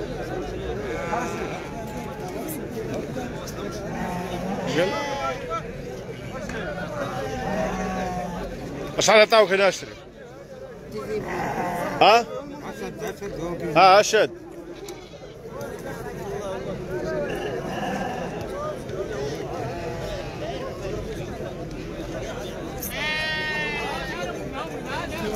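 Sheep bleat close by.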